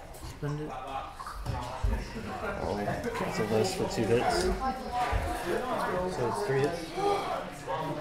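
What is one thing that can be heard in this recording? Small game pieces click on a table.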